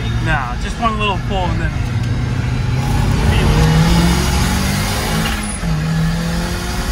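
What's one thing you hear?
A car engine roars up close, rising and falling in pitch as the car speeds up and shifts gears.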